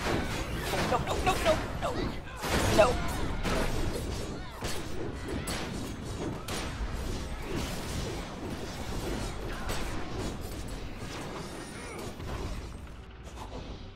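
Spell blasts and explosions crackle and boom in a game battle.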